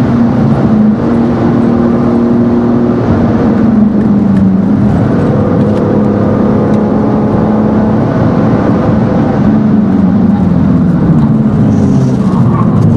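Tyres hum on the track surface.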